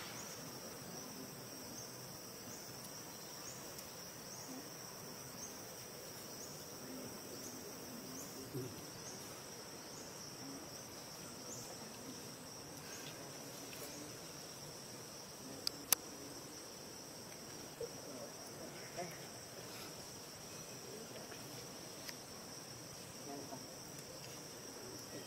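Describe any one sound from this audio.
A baby monkey squeaks softly close by.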